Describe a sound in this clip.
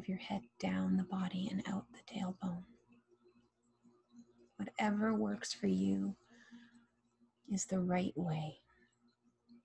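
A woman speaks softly and calmly into a close microphone, with long pauses.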